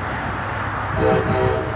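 A train horn sounds briefly.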